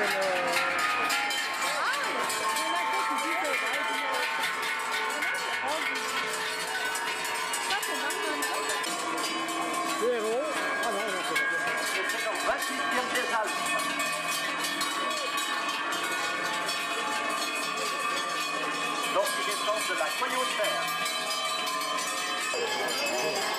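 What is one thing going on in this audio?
Large cowbells clang and ring steadily as cows walk past.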